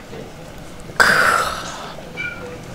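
A young man lets out a loud, satisfied breath.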